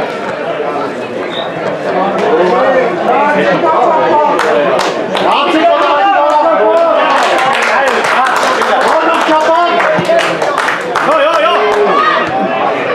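A crowd of spectators shouts and cheers from the stands.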